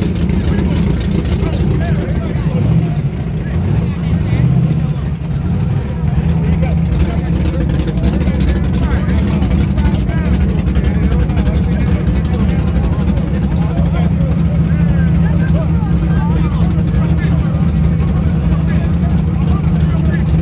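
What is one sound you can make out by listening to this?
A loud engine idles with a deep, steady rumble close by.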